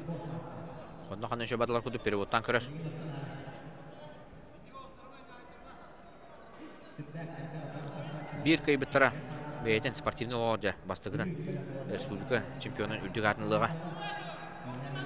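Spectators shout and cheer in a large echoing hall.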